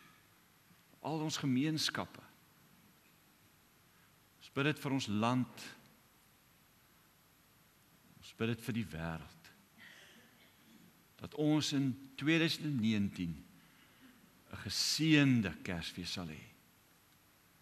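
A man speaks calmly through a microphone in short phrases with pauses, in a room with a slight echo.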